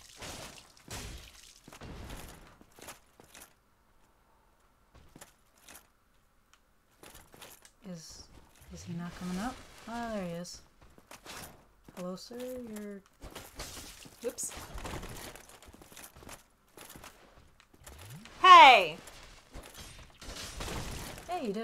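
A sword strikes with a heavy clash.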